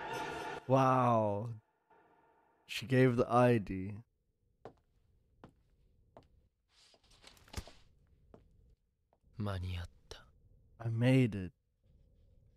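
A young man speaks into a microphone with animation.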